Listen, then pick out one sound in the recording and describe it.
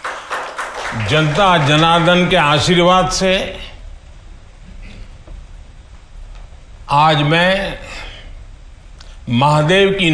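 An elderly man speaks slowly and with emphasis through a microphone.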